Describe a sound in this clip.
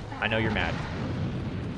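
A young man exclaims in surprise close to a microphone.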